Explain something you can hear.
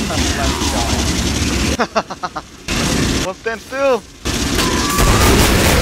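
A flamethrower roars in bursts.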